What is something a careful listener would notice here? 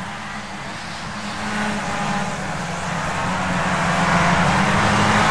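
A racing car engine whines loudly at high revs and grows louder.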